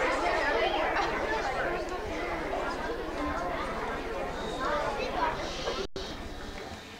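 Many children chatter and talk over each other nearby.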